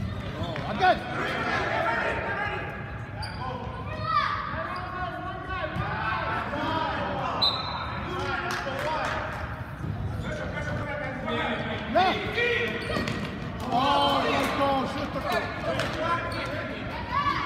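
Children shout and cheer in a large echoing hall.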